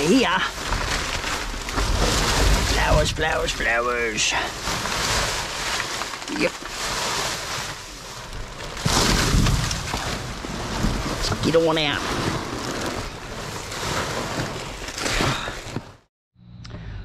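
Plastic bags rustle and crinkle as hands dig through rubbish.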